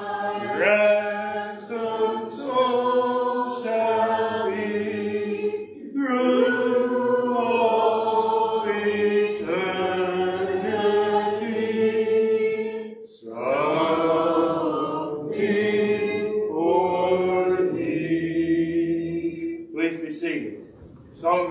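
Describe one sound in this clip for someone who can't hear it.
A man sings a slow hymn in a clear, sustained voice in a reverberant room.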